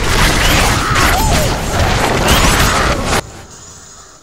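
Swords clash and slash in a loud, chaotic fight.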